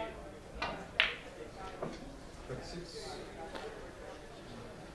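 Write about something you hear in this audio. Billiard balls knock together on the table.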